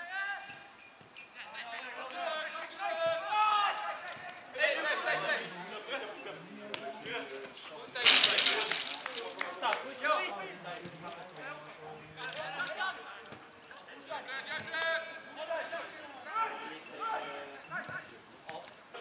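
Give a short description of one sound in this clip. Young football players shout and call to each other across an open field.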